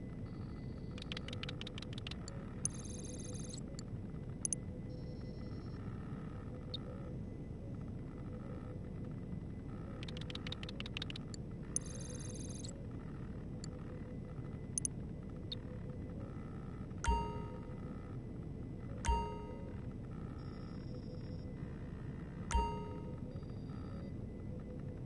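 Electronic menu beeps and chimes sound in short bursts.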